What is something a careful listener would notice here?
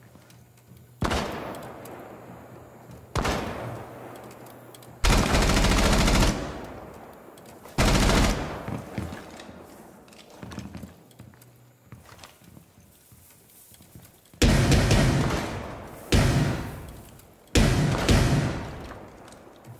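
A rifle fires loud single shots and short bursts that echo and fade.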